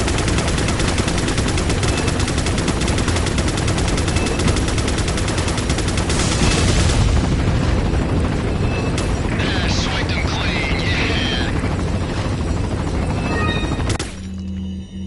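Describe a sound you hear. Heavy rain pours steadily, then stops abruptly.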